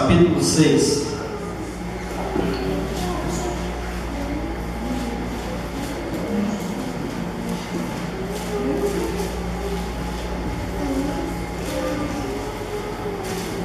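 A young man speaks steadily into a microphone, heard through loudspeakers in an echoing hall.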